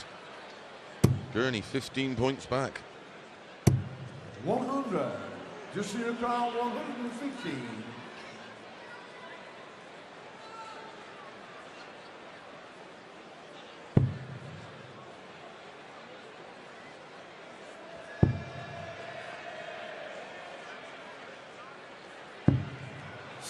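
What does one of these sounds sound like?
Darts thud sharply into a board.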